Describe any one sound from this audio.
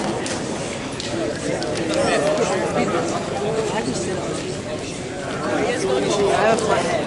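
Shoes squeak and scuff on a mat as two wrestlers grapple.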